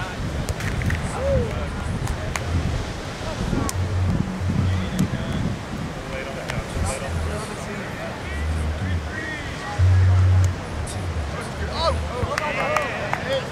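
People shout and call out during a game, at a distance.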